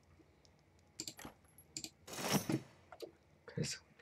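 A soft interface click sounds as a menu opens.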